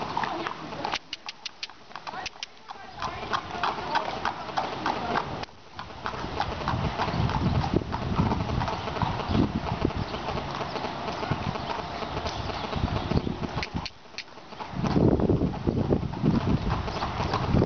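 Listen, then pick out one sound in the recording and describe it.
A horse's hooves patter quickly on dirt as it trots.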